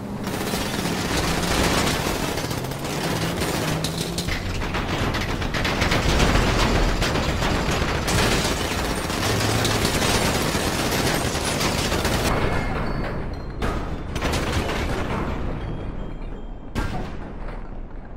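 A vehicle engine rumbles as it drives along a road.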